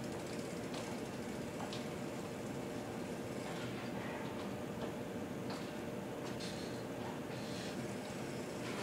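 A bike clatters and bangs on the floor during tricks.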